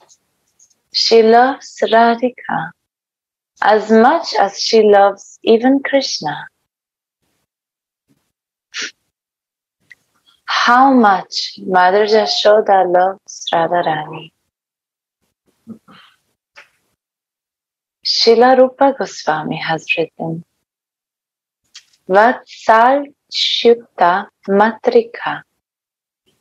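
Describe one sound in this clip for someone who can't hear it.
A young woman recites calmly in short phrases, heard through an online call.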